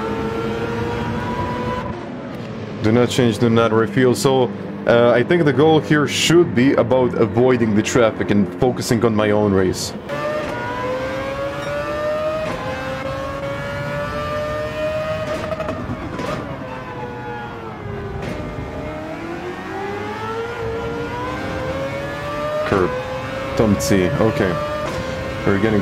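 A racing car engine drones and rises and falls in pitch as the car speeds up and slows down.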